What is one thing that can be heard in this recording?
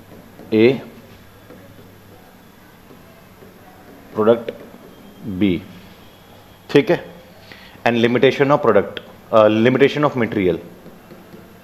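A man speaks in short bursts through a close microphone, explaining calmly.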